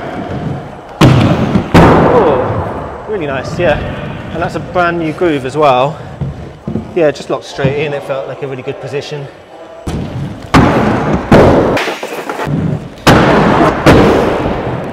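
Skates land with sharp thuds and clacks.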